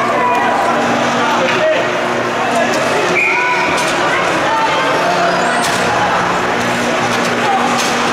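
Hockey sticks clack on the ice.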